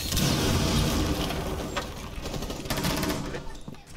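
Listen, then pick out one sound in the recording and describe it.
Wood splinters as a barricade is blown apart.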